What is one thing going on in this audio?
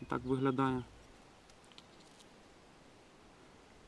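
A metal buckle clinks softly as a strap is handled.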